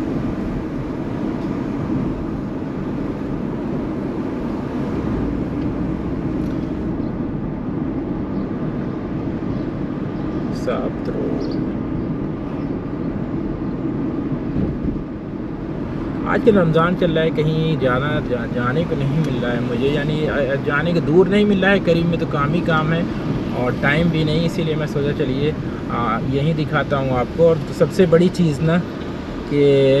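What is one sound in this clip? A car engine hums steadily, with tyre noise on the road, heard from inside the car.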